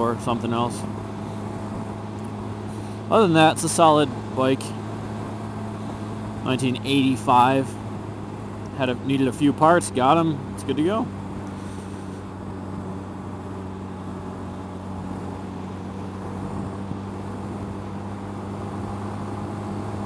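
A motorcycle engine hums steadily while cruising.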